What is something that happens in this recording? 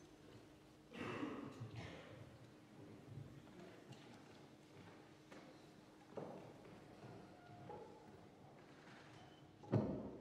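Young people speak in turn, heard from a distance in a hall with some echo.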